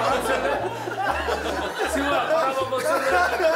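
A young man speaks with embarrassment.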